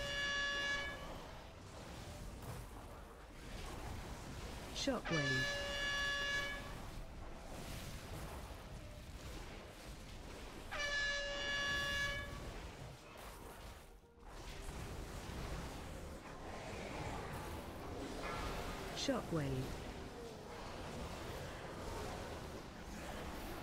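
Magic spells crackle and whoosh in a battle in a game.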